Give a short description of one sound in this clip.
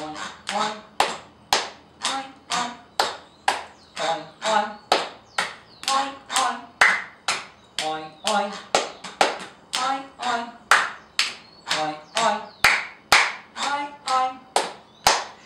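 A man claps his hands in a steady rhythm.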